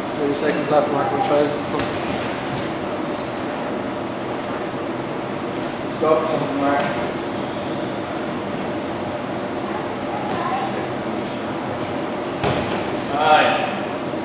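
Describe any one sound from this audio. Bodies shuffle and thump on a padded mat.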